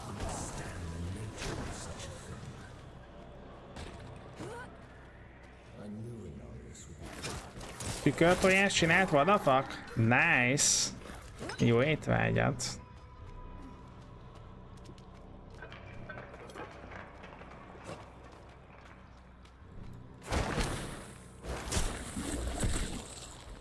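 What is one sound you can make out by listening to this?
Sharp hits and magic blasts crack during a fight.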